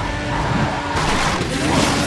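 A car's tyres screech as it drifts.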